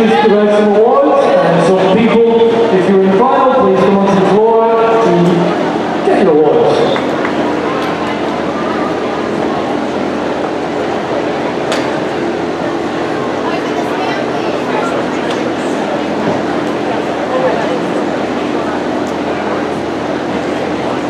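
A large crowd murmurs and chatters in a big echoing hall.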